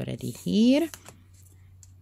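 Paper rustles as it is pressed flat.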